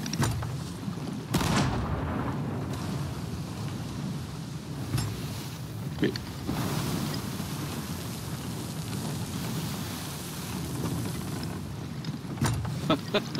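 Wind howls through ship rigging.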